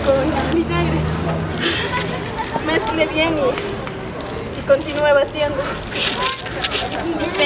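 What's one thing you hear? A young woman talks and laughs nearby, outdoors.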